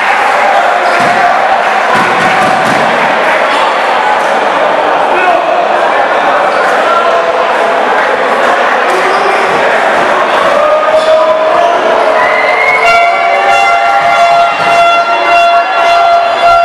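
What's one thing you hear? A large crowd cheers and chants in an echoing hall.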